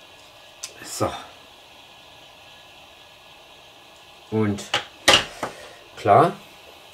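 Small plastic parts click down onto a table.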